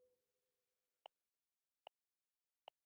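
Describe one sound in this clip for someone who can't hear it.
Soft clicks sound from a game menu.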